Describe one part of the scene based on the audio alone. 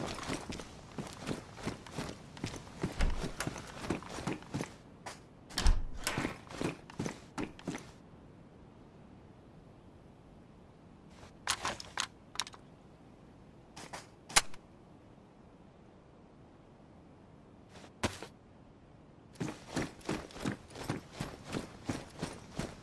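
Footsteps walk steadily over hard ground and floors.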